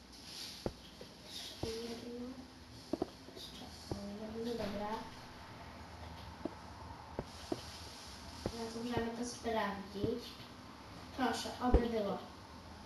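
Stone blocks are placed one after another with soft knocks.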